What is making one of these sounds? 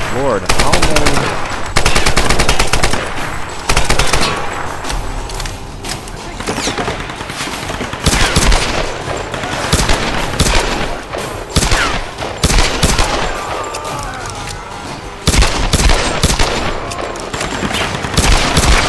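Gunshots crack in rapid bursts, echoing around.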